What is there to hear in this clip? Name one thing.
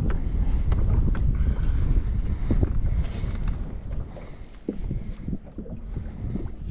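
Wind blows and rumbles across open water.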